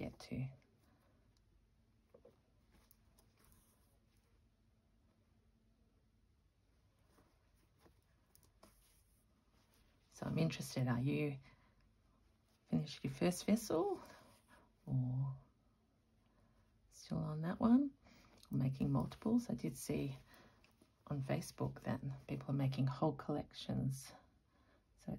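Cloth rustles as hands handle it.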